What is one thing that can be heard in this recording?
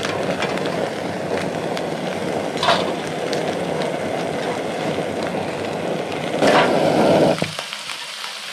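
A gas camping stove burner roars steadily, then cuts off.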